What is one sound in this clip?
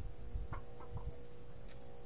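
A chicken scratches and pecks at dry ground.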